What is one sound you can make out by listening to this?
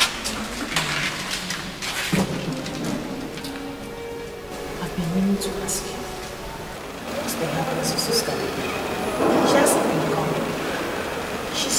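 Another woman answers softly.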